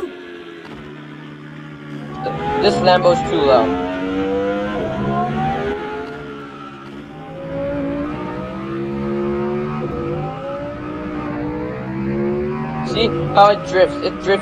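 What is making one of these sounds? A sports car engine revs and roars as it speeds up and slows down.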